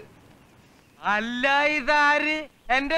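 An older man answers loudly.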